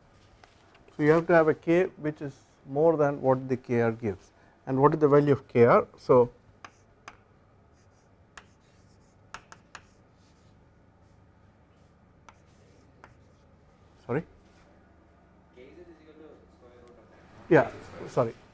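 A man speaks calmly into a microphone, lecturing.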